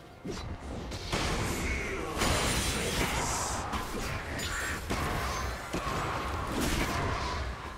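Game characters clash with rapid hits.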